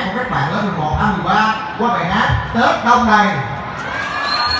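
A young man speaks into a microphone through loudspeakers, in an echoing hall.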